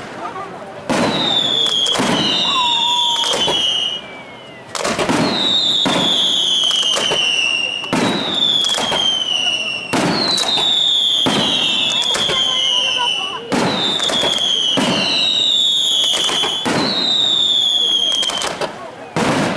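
Fireworks whistle as they shoot up, falling in pitch.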